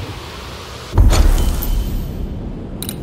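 A deep whoosh sounds.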